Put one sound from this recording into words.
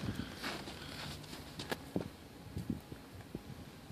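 Snow crunches under footsteps outdoors.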